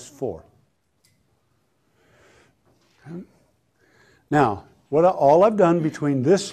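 An elderly man lectures calmly, close to a microphone, with pauses.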